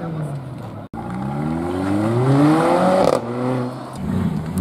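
A second car engine roars and rises in pitch as it accelerates hard.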